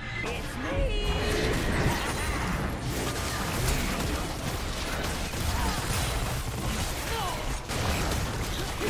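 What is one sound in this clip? Game spell effects whoosh and burst in a busy fight.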